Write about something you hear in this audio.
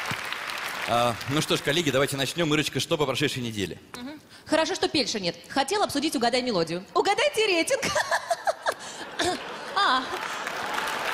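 A young woman speaks with animation into a microphone in a large hall.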